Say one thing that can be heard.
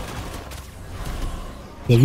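A blade slashes and strikes with a sparkling magical burst.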